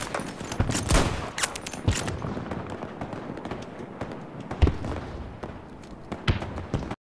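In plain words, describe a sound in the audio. Gunshots crack repeatedly in a battle.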